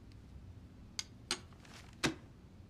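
Papers rustle and tap on a desk.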